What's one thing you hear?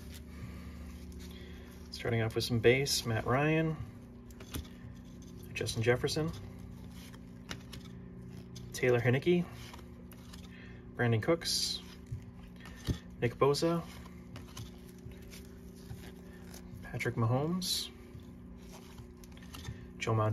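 Trading cards slide and rustle softly against each other.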